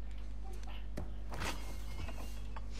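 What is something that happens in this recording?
A refrigerator door opens.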